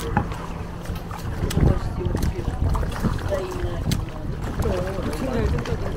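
Fish splash and thrash at the water's surface.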